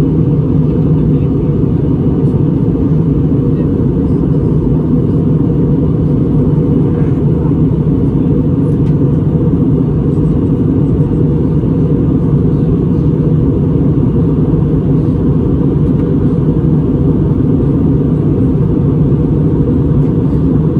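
A jet engine roars steadily in a plane's cabin.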